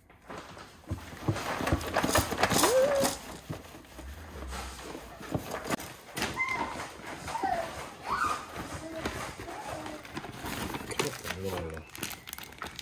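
A paper bag crinkles and rustles as it is opened.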